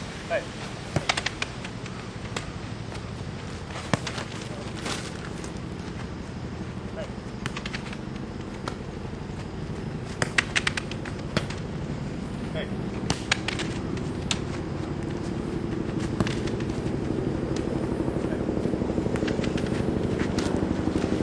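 A ball is kicked with sharp thuds outdoors.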